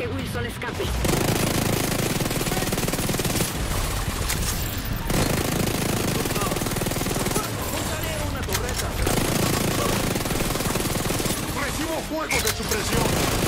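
Rapid gunfire rattles in a game.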